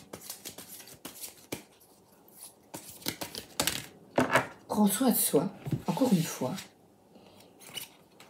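Playing cards shuffle and flick with quick papery taps.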